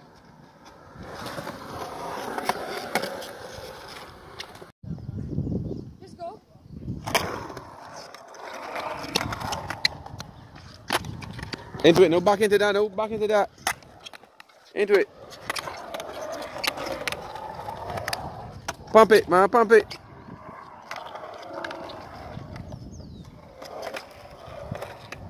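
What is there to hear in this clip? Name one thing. Skateboard wheels rumble and roll over concrete.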